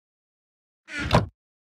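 A wooden chest thumps shut.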